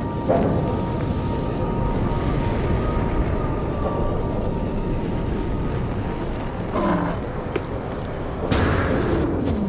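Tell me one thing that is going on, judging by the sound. Wind roars steadily across open ground.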